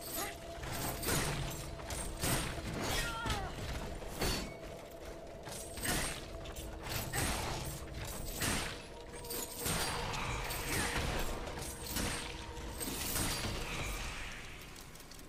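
Metal weapons clash and strike in quick bursts.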